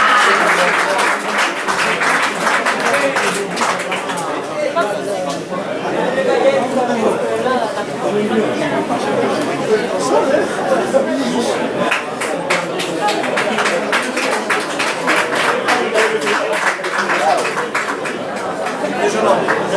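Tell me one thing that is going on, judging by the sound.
A crowd of men talk and call out close by, outdoors.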